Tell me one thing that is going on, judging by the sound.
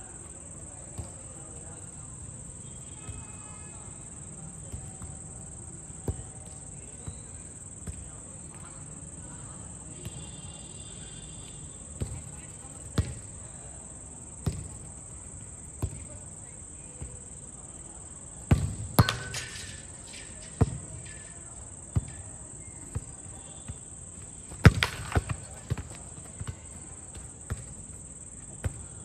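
A football is kicked with sharp thuds outdoors.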